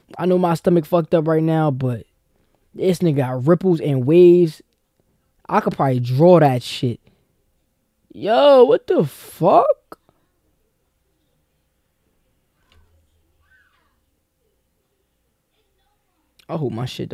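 A man talks close by, with animation, in short bursts.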